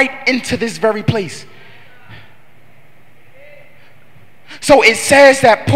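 A young man speaks with passion into a microphone, heard through loudspeakers in an echoing hall.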